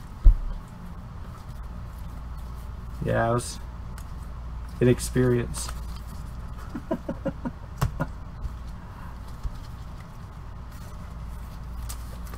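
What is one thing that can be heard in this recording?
Trading cards click and slide against each other as they are handled.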